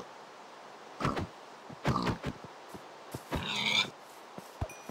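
A pig squeals when struck.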